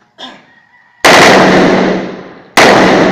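Pistol shots ring out loudly, one after another, followed by an echoing ring.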